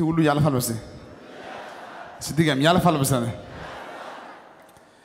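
A crowd laughs.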